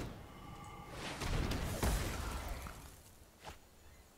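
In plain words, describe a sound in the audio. A magical whoosh sweeps past as a spell strikes.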